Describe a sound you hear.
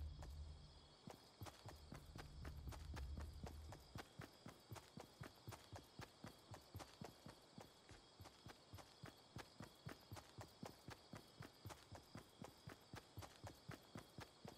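Footsteps run quickly and steadily over hard ground and grass.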